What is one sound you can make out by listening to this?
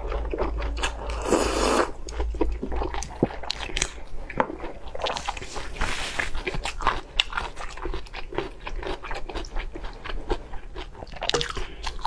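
A young woman chews and slurps food loudly close to a microphone.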